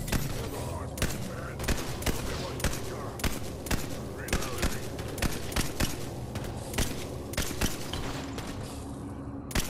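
Sniper rifle shots crack sharply again and again.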